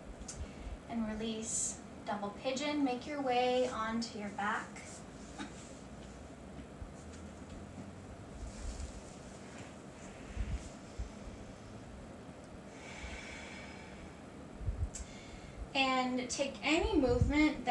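A woman speaks calmly and gently, close to a microphone.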